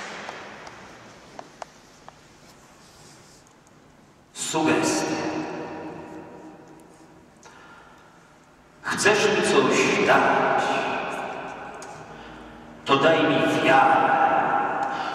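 A man reads aloud calmly into a microphone in a large echoing hall.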